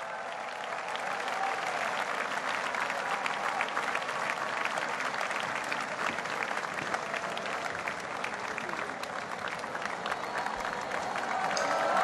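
A large audience applauds outdoors.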